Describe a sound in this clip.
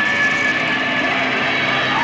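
A young man shouts into a microphone.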